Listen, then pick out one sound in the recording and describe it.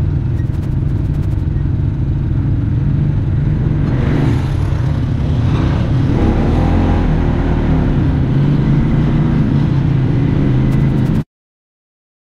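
An off-road vehicle's engine rumbles loudly up close.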